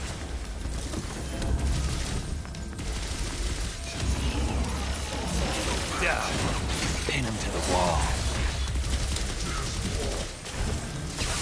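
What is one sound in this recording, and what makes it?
Heavy footsteps run across a stone floor.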